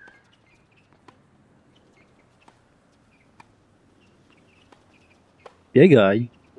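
A tennis ball is struck back and forth with a racket.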